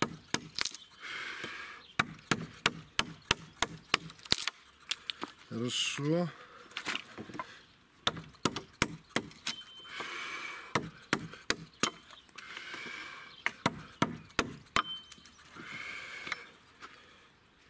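A chisel scrapes and shaves wood.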